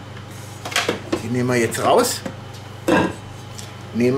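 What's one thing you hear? A metal bowl clanks as it is lifted out and set down.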